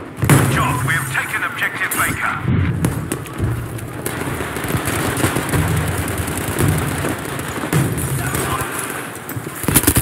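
Loud explosions boom and roar.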